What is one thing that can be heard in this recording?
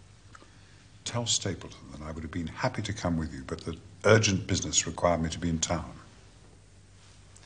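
An older man speaks with firm animation.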